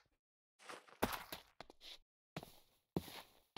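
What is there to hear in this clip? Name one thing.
Footsteps patter over grass and gravel.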